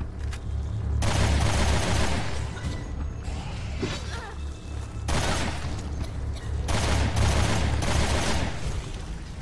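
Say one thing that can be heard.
A gun fires rapid, loud shots in bursts.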